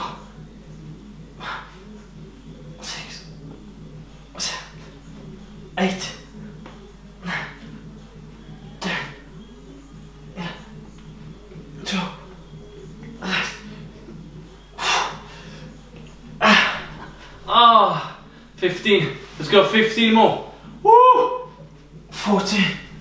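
A man breathes out hard in short, regular bursts.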